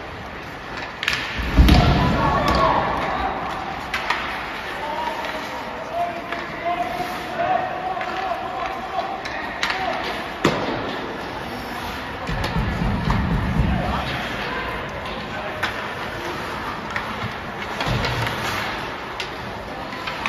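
Hockey sticks clack sharply against the puck.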